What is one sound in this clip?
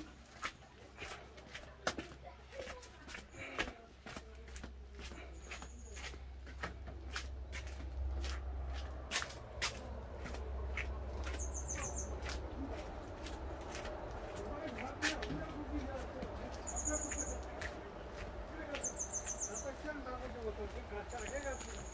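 Footsteps crunch on a dusty concrete floor.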